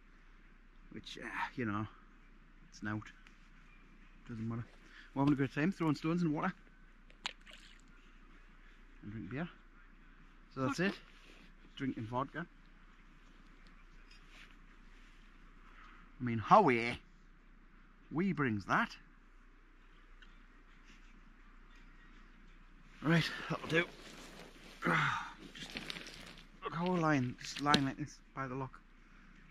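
A man talks calmly and close by, in short bursts, outdoors on a quiet night.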